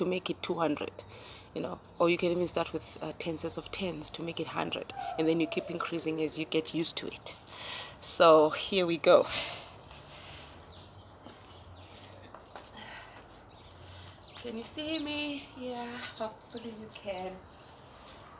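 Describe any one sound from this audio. A young woman talks close by in a calm, chatty way.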